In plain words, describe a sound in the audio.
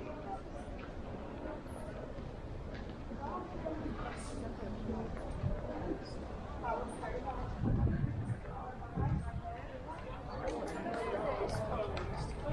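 A crowd of people chatters in the street outdoors.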